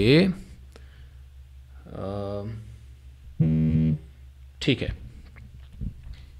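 Electronic synth sounds play in short bursts, some sweeping down in pitch.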